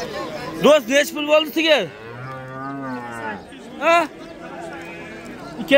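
Men talk and call out loudly nearby in a crowd.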